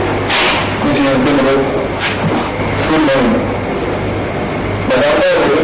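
A woman groans weakly nearby.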